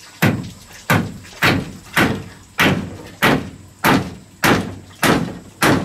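A hammer knocks steadily on wood, with a short ring after each blow.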